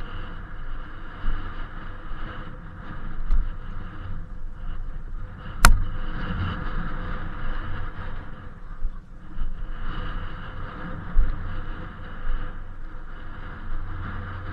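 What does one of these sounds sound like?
Wind buffets against a microphone outdoors.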